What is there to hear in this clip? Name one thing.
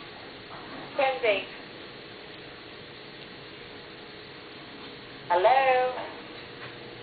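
A little girl speaks in short, high-pitched bursts close by.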